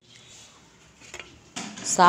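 A metal pressure cooker lid scrapes and clanks as a hand turns it.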